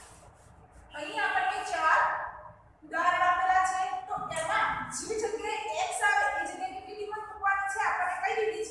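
A young woman speaks clearly and explains, close by.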